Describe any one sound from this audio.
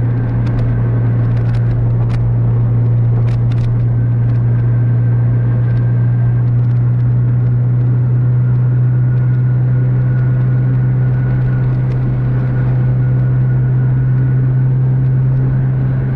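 An engine hums steadily from inside a moving vehicle.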